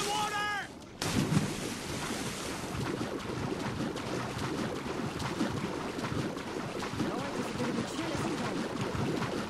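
Water sloshes steadily as a swimmer strokes through it.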